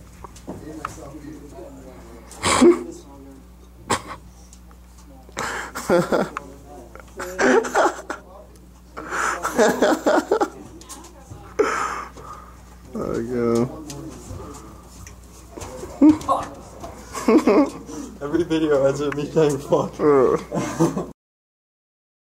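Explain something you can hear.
A young man laughs and talks nearby.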